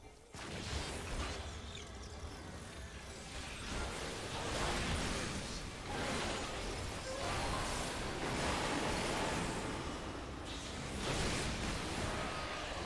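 Magic spell effects whoosh and burst in loud waves.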